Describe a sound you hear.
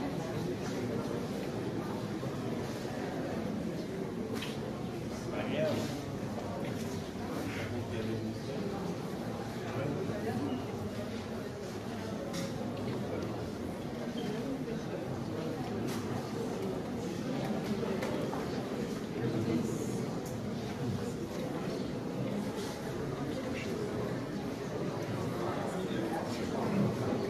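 A crowd of people murmurs and chatters indoors.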